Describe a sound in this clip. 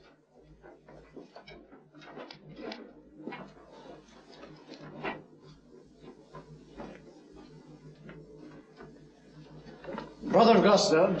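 A group of men murmur quietly.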